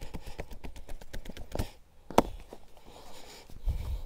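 Hands slap and pat on bare skin.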